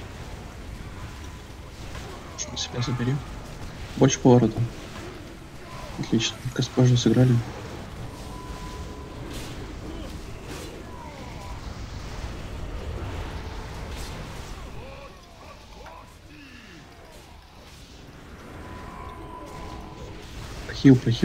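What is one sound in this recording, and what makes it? Spell effects whoosh and crackle during a fantasy battle.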